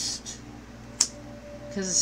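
A card taps down onto a tabletop.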